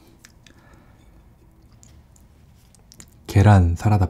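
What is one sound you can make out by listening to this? Soft bread squishes as hands tear it.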